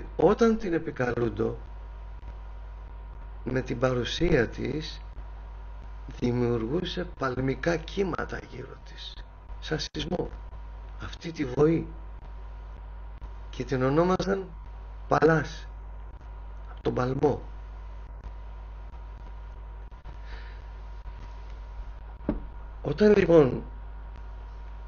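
A man speaks calmly in short bursts with pauses, heard through an online call.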